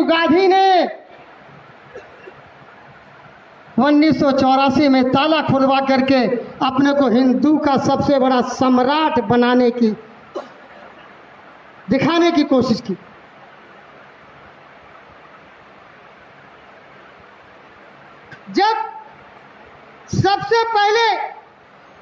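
An elderly man speaks into a microphone over a loudspeaker in a large hall, in slow, drawn-out phrases with long pauses.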